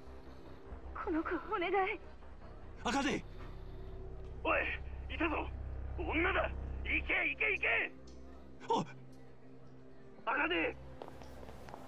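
A man speaks urgently over a telephone.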